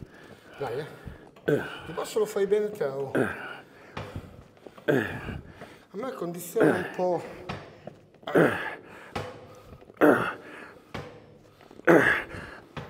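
A man talks with animation close by, in bursts.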